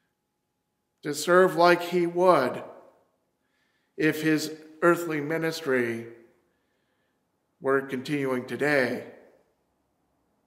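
A middle-aged man speaks calmly and warmly in short phrases, close to a microphone.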